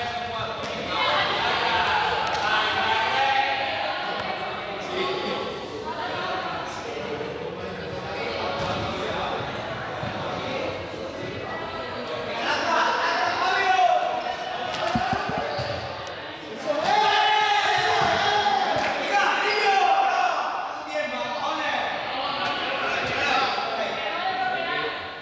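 A crowd of young people chatters and calls out in a large echoing hall.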